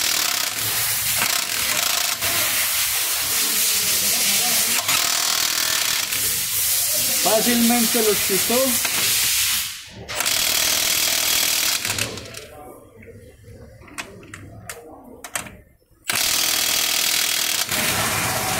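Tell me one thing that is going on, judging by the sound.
An impact wrench whirs and rattles loudly in long bursts.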